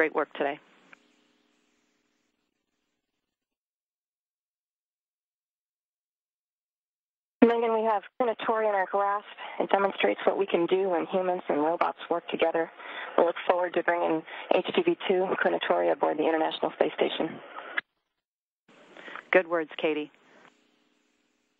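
A man speaks calmly over a loudspeaker.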